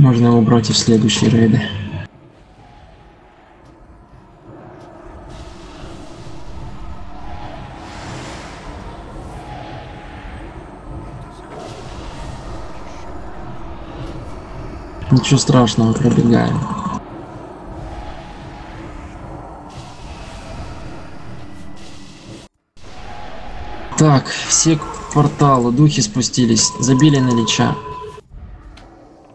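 Magic spells whoosh and crackle amid battle.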